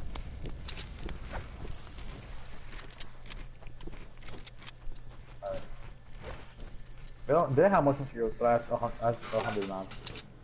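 Quick footsteps patter over grass in a video game.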